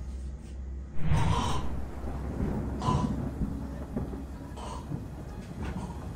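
A man groans loudly close by, in several bursts.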